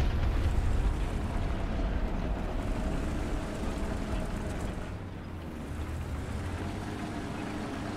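A tank engine rumbles deeply as the tank drives.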